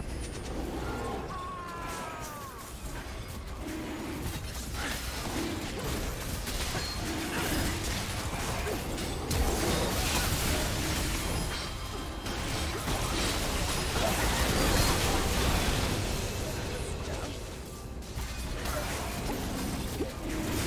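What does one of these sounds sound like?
Spell effects crackle and burst during a fast game battle.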